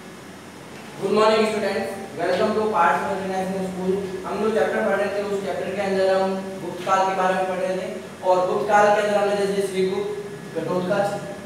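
A man speaks clearly and steadily, close by, in a room with a slight echo.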